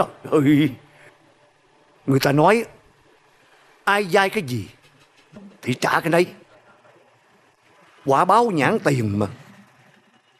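An older man talks calmly nearby.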